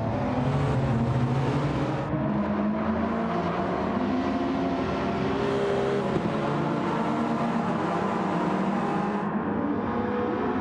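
Several racing car engines roar loudly and shift in pitch as the cars speed past.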